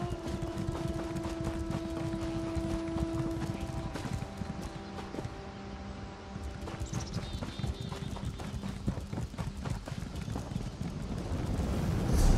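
Footsteps thud quickly on grass and stone.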